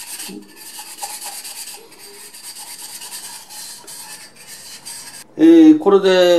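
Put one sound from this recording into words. Water sloshes and splashes in a basin as a sponge is squeezed.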